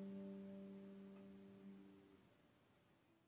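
A guitar chord rings out and fades away.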